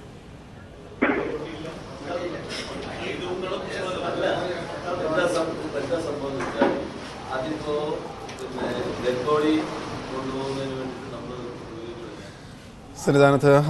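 A middle-aged man speaks with animation in a room.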